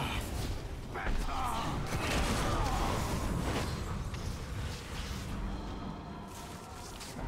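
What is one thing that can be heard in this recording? Magic spells whoosh and crackle during a fight.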